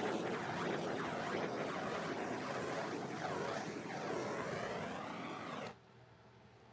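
A gloved hand rubs and smooths a hard, glossy surface.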